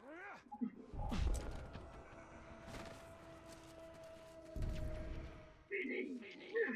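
Heavy thuds sound as a climber lands on a stone roof.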